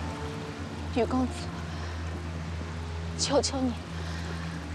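A young woman groans softly in pain, close by.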